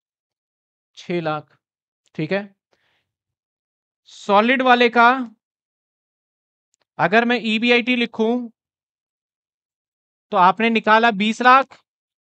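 A man speaks calmly and explains, close to a microphone, in short bursts with pauses.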